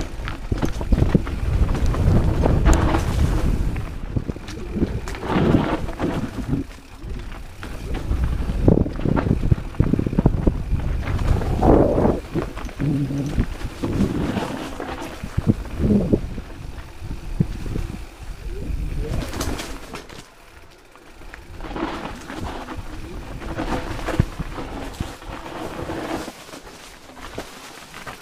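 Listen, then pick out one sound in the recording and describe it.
Wind rushes past close up.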